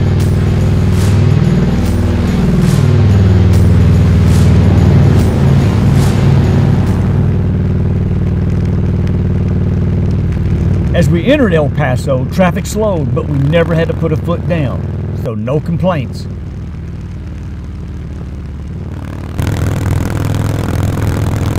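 A V-twin touring motorcycle cruises along a highway.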